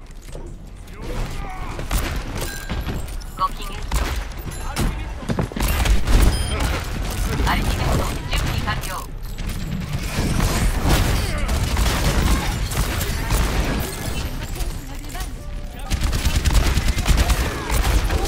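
Guns fire in rapid bursts with loud impacts.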